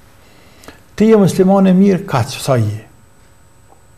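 A middle-aged man speaks with emphasis into a close microphone.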